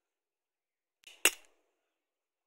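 A hammer taps on wood.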